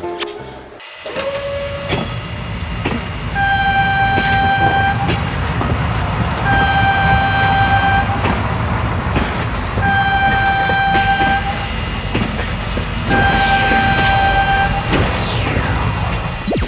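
A train rumbles heavily along the tracks.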